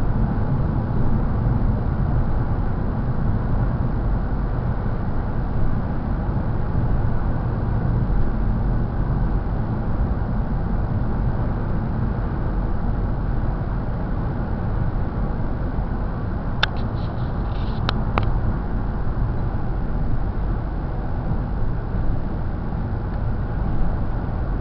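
A car engine hums steadily with a low rumble as the car drives along.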